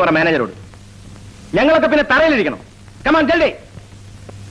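A man speaks loudly and forcefully at close range.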